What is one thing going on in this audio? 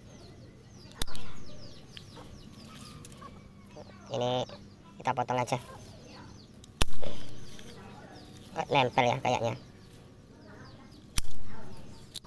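Pruning shears snip sharply.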